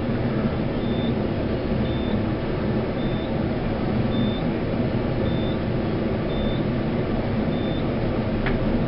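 An elevator chime beeps briefly at a steady pace as floors pass.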